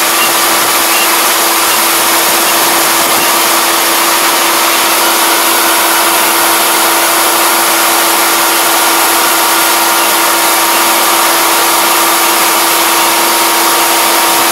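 Rice grain pours in a hissing stream into a metal truck bed.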